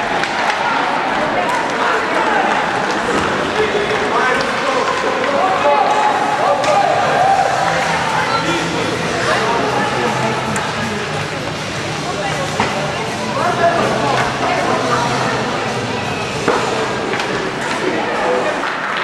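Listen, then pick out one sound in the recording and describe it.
Young players shout and call out to each other on the ice.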